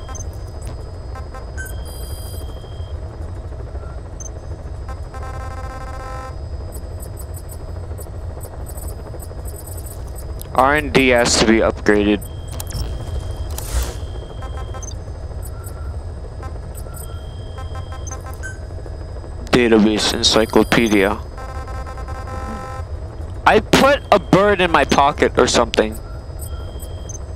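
A helicopter engine rumbles low and steady.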